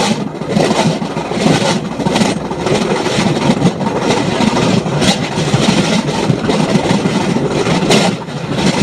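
Wind rushes loudly past in the open air.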